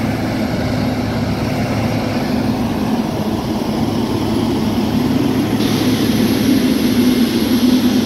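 A grader blade scrapes and pushes loose dirt.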